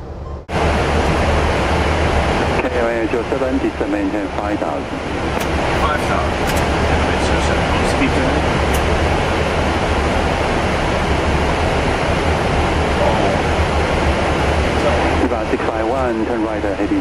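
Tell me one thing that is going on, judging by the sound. A steady, low roar of aircraft engines and rushing air fills the cabin.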